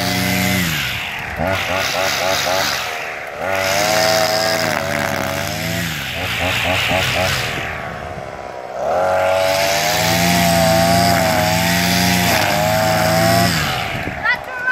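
A petrol string trimmer engine revs up and down.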